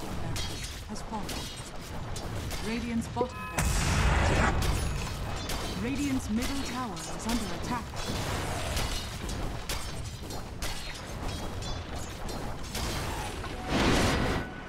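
Weapons clash and spells burst in a busy game battle.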